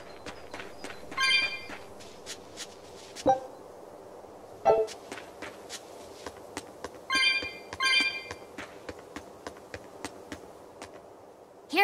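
Quick light footsteps patter on grass and stone.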